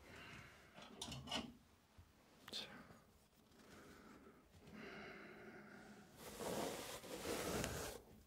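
A plastic comb's teeth are flicked and rubbed close to a microphone.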